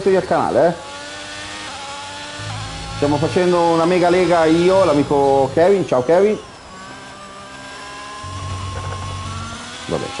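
A racing car engine whines at high revs, rising and falling with gear changes.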